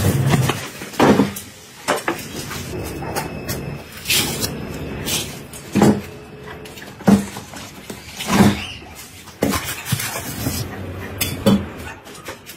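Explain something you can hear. A knife chops and thumps on a wooden board.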